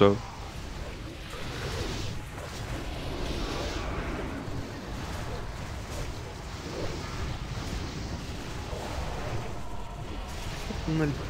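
Magic spells crackle and whoosh amid a busy fight.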